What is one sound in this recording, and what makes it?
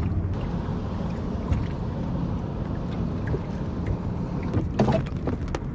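Wind rumbles outdoors across open water.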